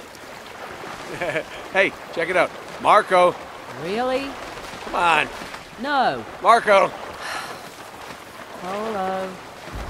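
Water sloshes as a man swims.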